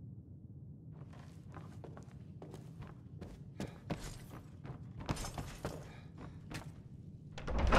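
Armoured footsteps thud on wooden stairs and floorboards.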